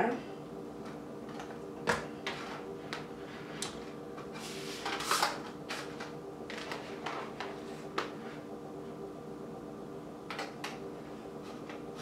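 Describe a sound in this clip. Food rustles and taps as hands press it down.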